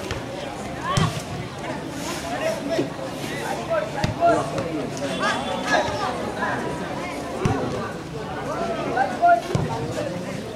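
A football thuds as players kick it.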